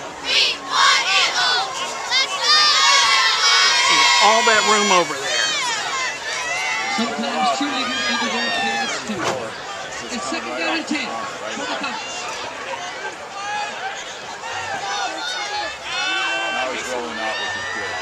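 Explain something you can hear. A crowd cheers and shouts outdoors in a large stadium.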